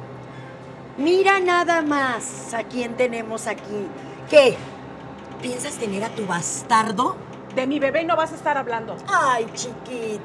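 A middle-aged woman speaks loudly and with animation, close by.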